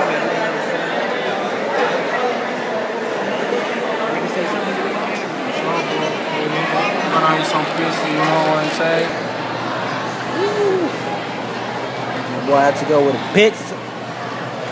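A crowd murmurs in a busy, echoing hall.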